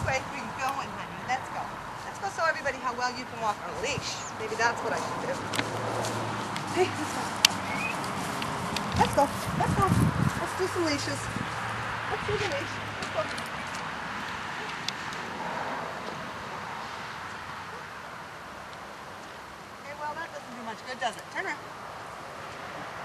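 A woman talks to a dog nearby in a lively voice.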